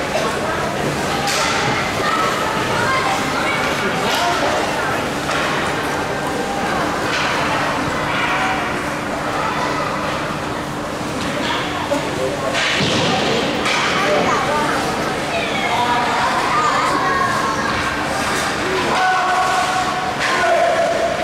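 Hockey sticks clack against the puck and ice.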